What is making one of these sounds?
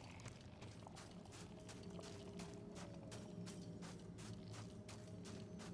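Footsteps run across sandy ground.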